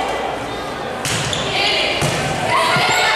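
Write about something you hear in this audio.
A volleyball is struck with loud slaps that echo through a large hall.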